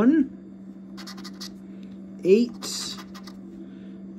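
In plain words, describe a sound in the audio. A coin scratches across a paper card in short rasping strokes.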